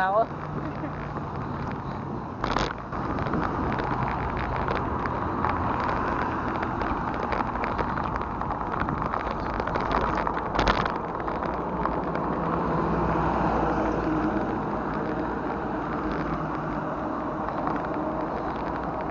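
A bicycle rattles as it is wheeled along.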